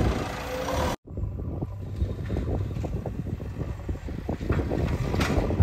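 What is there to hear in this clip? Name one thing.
Dirt and clods tumble and thud from a loader bucket.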